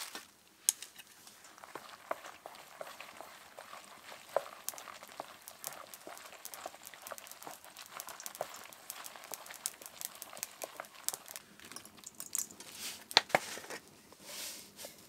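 Chopsticks stir and clatter against a metal bowl.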